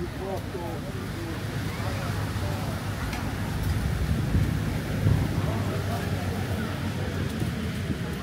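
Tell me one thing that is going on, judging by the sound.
Men and women chatter nearby outdoors.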